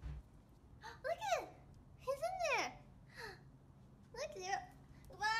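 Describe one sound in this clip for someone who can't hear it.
A small dog whines excitedly.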